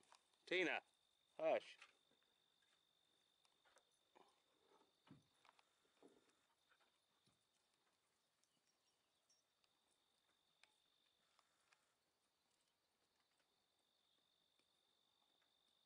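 Horses' hooves thud softly on dry dirt.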